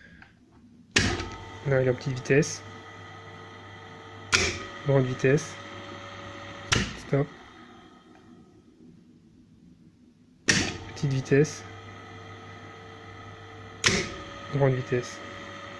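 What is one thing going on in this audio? An electric motor hums steadily, then winds down and starts again.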